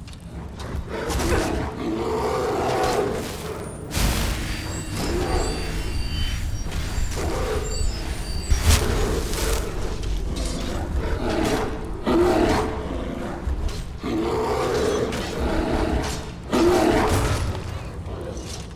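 A bear growls and roars.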